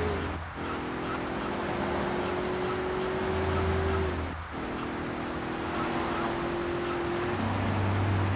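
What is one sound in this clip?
A sports car engine revs hard and shifts gears as the car speeds along.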